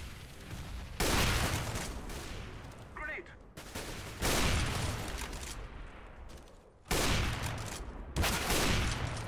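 A sniper rifle fires loud, echoing shots.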